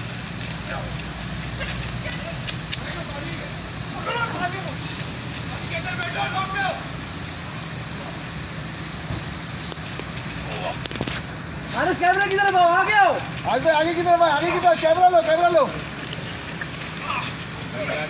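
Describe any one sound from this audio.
Heavy rain pours down onto pavement outdoors.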